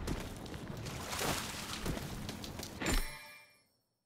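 Footsteps crunch over rubble.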